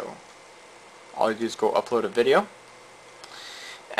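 A computer mouse clicks.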